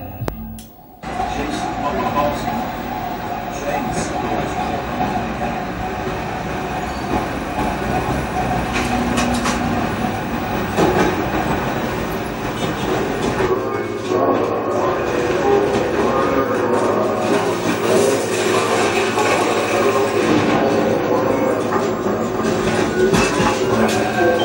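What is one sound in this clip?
Music with a beat plays through a television loudspeaker.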